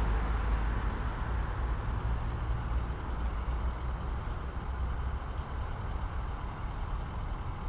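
A vehicle's tyres roll on asphalt.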